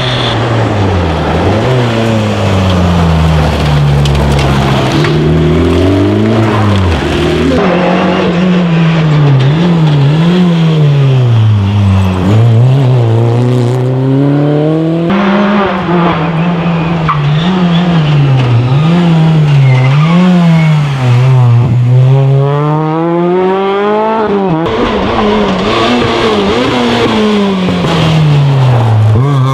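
A rally car engine revs hard, rising and falling as cars race by up close, one after another.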